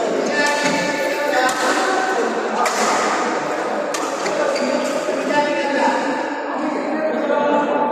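Many people talk and call out in a large echoing hall.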